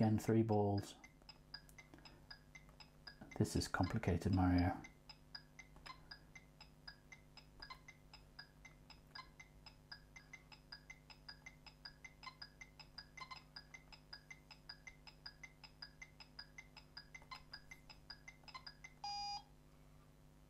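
A handheld game plays quick, steady electronic beeps.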